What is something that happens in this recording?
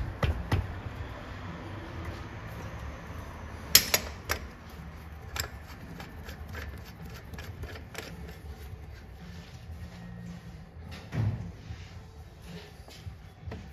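Metal tools clink and scrape against an engine.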